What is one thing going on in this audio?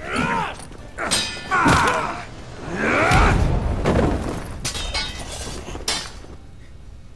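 A man groans and cries out in pain during a struggle.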